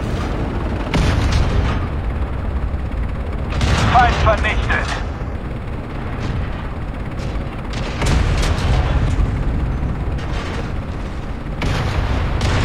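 A tank cannon fires with loud booms now and then.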